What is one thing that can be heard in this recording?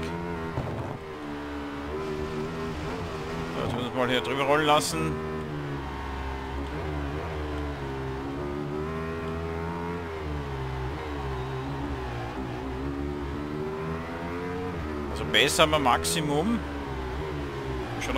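A motorcycle engine revs high and shifts gears steadily.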